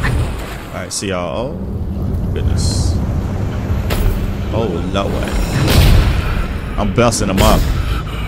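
A large beast growls and roars loudly.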